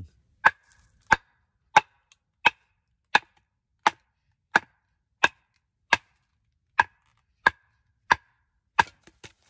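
A wooden baton strikes the spine of a knife in sharp, steady knocks, driving it into a stick of wood.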